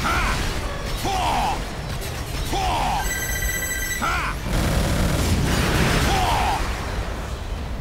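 Rocket engines roar steadily.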